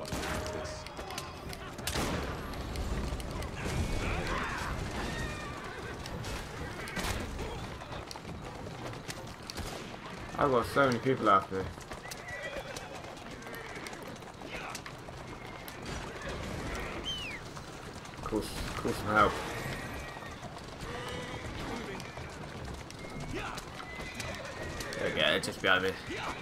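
Carriage wheels rumble over cobblestones.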